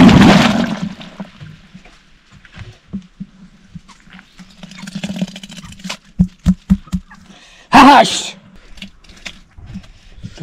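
A wooden pole stirs liquid in a wooden mortar with soft sloshing and knocks.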